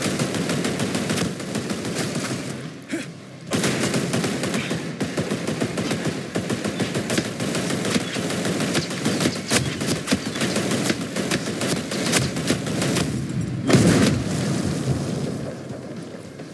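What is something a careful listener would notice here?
Rapid gunfire crackles and booms close by.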